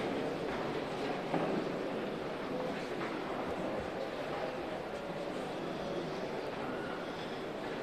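A crowd of men murmurs in the background.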